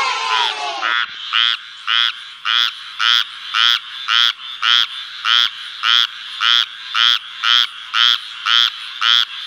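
A frog croaks in a rapid, steady rhythm of short calls.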